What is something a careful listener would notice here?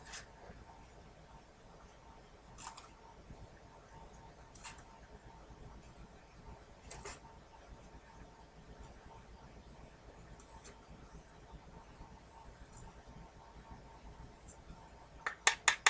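An acrylic stamp block taps and knocks against a hard surface.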